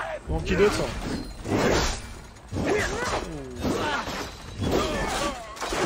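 Swords clash in a fight.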